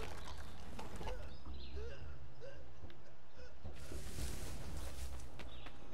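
Feet swish through tall grass.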